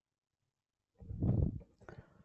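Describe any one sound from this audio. Wind gusts across grass outdoors.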